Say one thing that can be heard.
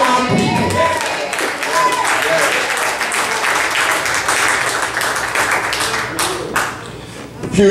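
A congregation claps and cheers.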